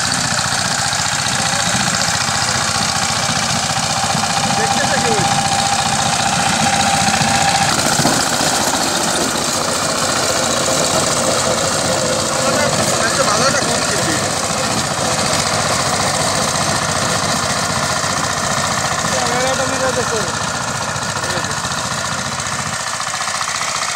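A small diesel engine chugs steadily nearby.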